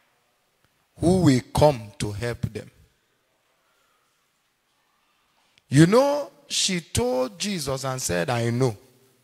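A man preaches forcefully into a microphone, in bursts with long pauses.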